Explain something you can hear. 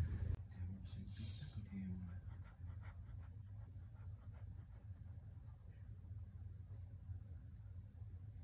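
A small dog pants quickly, close by.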